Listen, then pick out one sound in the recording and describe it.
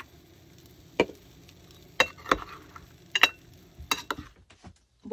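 A spoon clinks against clam shells in a metal bowl.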